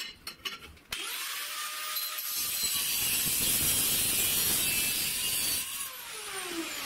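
An angle grinder whines as it cuts through a metal tube.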